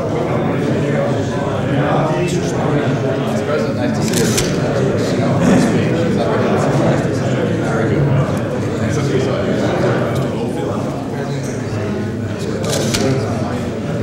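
Several men talk and greet each other warmly nearby.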